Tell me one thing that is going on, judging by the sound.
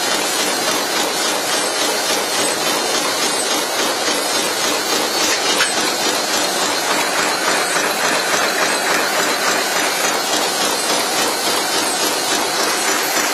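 A machine clatters and whirs steadily and loudly.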